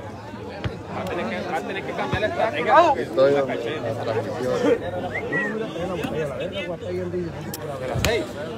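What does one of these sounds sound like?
Men nearby shout excitedly.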